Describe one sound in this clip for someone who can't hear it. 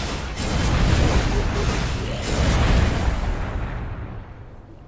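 Fiery spell blasts roar and crackle loudly.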